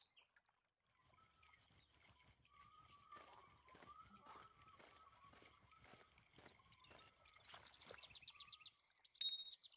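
Footsteps rustle steadily through grass and undergrowth.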